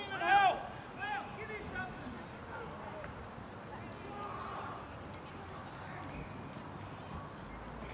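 Young men call out to each other in the distance outdoors.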